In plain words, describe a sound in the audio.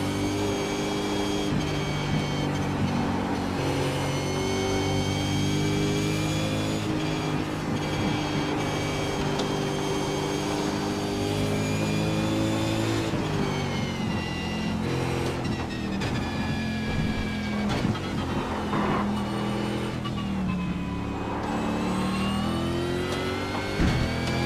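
A race car engine roars loudly, its pitch rising and falling as the gears change.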